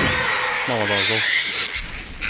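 A creature lets out a shrill cry.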